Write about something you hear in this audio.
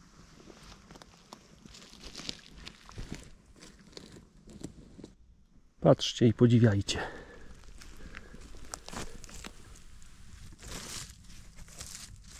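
Footsteps crunch on dry twigs and needles.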